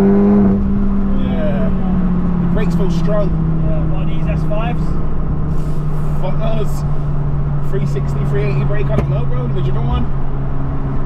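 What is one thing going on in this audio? A man talks with animation close by inside a car.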